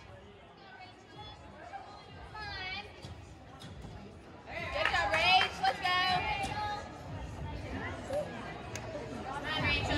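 Spectators cheer and call out in a large echoing hall.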